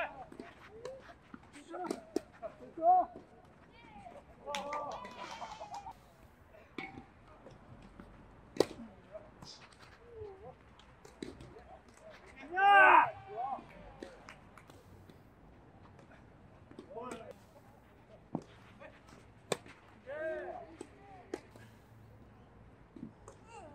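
Tennis balls bounce on the hard court.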